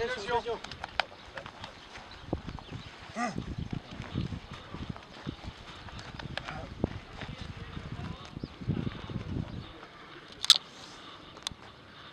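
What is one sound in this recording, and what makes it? Several men murmur and talk quietly nearby, outdoors.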